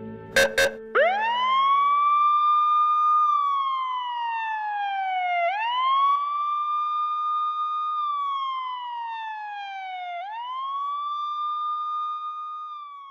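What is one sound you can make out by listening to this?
A police siren wails, rising and falling slowly.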